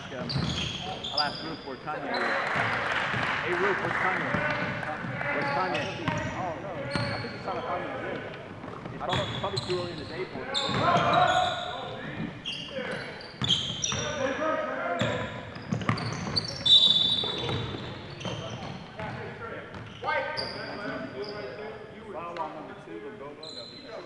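Young men call out to each other across an echoing gym.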